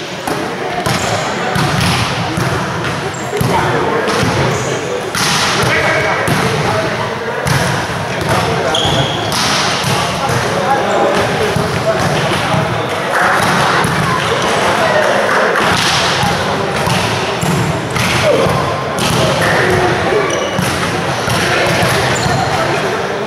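A volleyball is struck and thuds repeatedly.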